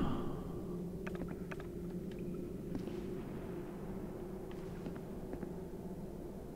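Light footsteps tap on stone.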